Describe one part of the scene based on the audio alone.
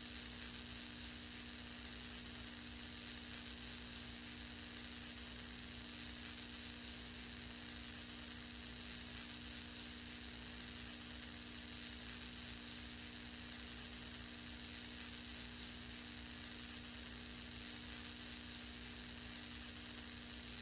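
A fluorescent lamp hums steadily.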